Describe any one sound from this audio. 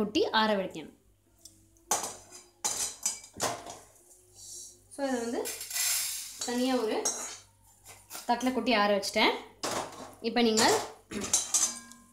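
A metal spoon clinks and scrapes against a metal wok.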